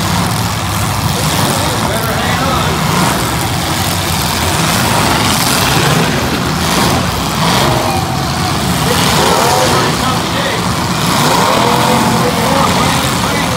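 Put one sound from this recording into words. Car engines roar and rev loudly outdoors.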